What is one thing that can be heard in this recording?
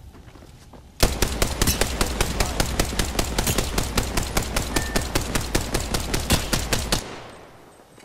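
A gun fires in a rapid automatic burst.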